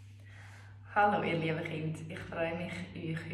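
A young woman speaks calmly and cheerfully close by.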